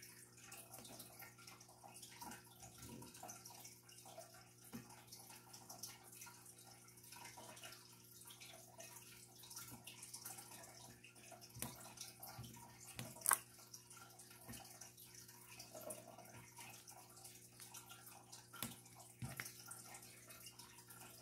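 A pen taps softly, placing tiny plastic beads one by one.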